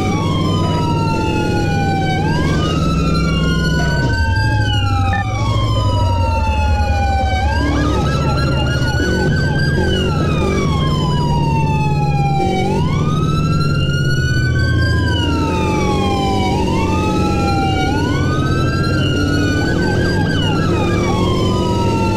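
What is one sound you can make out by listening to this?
A motorcycle engine roars steadily.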